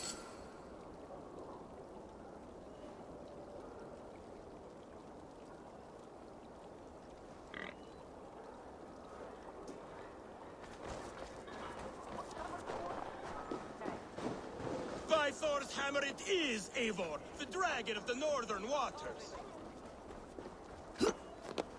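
Footsteps crunch on snow and gravel.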